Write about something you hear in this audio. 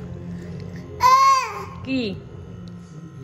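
A toddler squeals with a rising and falling cry.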